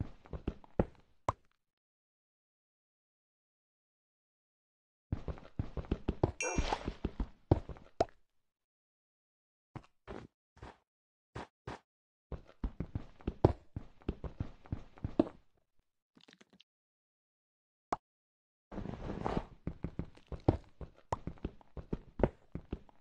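A pickaxe chips rapidly at stone in quick tapping bursts.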